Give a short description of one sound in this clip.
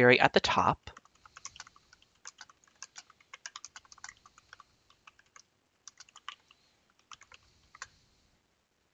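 Keys clatter softly as someone types on a keyboard.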